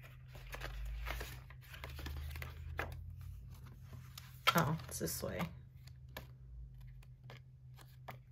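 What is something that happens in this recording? Stiff paper sheets rustle and flap as they are turned over.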